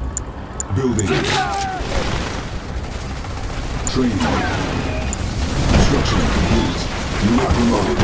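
Laser beams zap and crackle in a battle.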